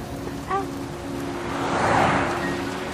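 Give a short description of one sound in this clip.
A car drives past on a wet road.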